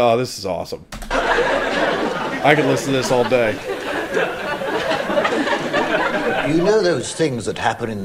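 A man laughs heartily close to a microphone.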